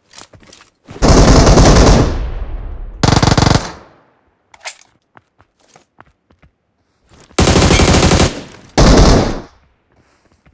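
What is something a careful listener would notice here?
Gunshots ring out in loud, echoing bursts.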